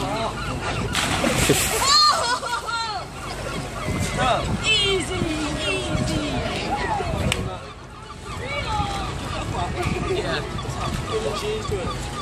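Young people shout and laugh close by.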